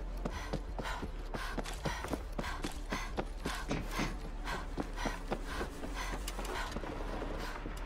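Heavy boots run quickly on hard ground.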